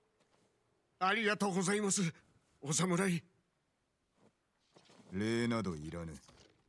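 A man speaks calmly and close.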